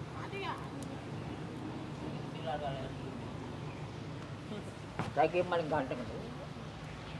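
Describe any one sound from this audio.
A man speaks in short bursts nearby.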